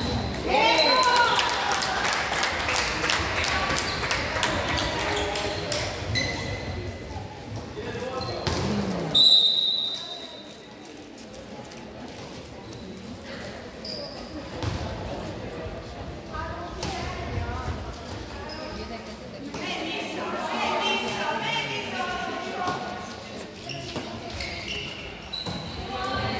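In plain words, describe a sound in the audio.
Young girls shout and call out to each other in an echoing hall.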